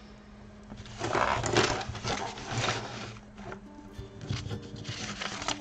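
A large sheet of paper rustles and flaps as it is handled close by.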